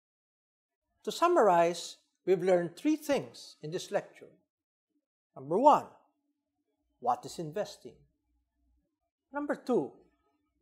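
An older man speaks calmly and clearly into a close microphone, with pauses.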